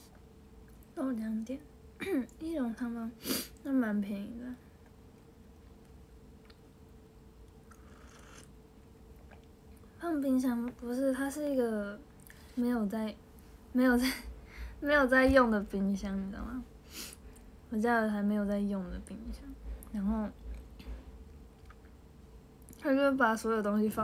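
A young girl talks casually and close up, in short bursts.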